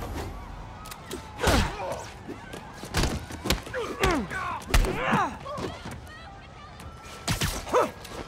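Blows and thuds land hard in a scuffle.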